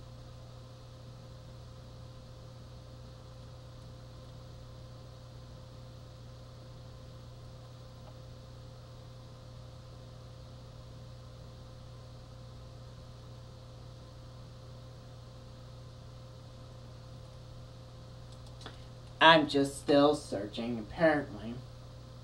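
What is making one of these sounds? A television set hums steadily.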